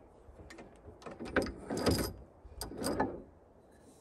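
A wooden piece knocks and clicks as it is fitted into a lathe.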